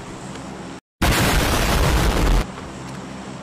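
An explosion roars loudly.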